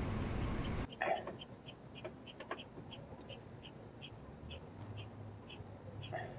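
A man grunts with effort close by.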